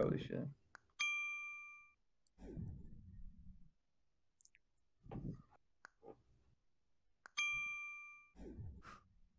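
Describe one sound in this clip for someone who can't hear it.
A bright electronic chime rings out and fades.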